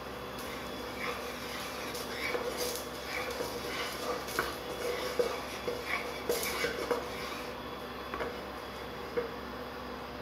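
A wooden spatula scrapes and taps in a frying pan.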